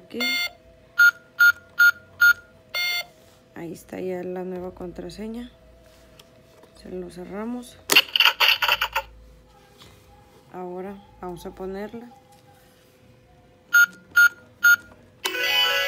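Electronic toy keypad buttons beep with short high tones.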